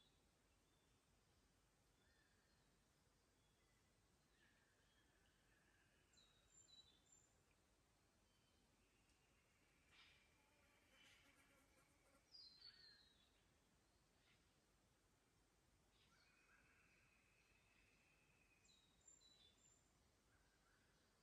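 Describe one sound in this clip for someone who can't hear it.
A shallow creek trickles softly over stones.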